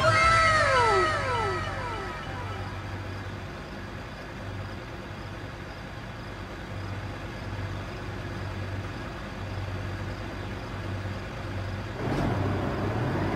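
A truck engine hums steadily at low speed.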